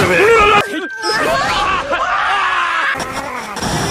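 Two young men laugh with delight.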